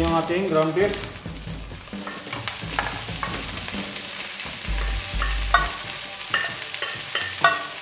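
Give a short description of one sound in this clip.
Cooked meat slides from a glass jar into a pan.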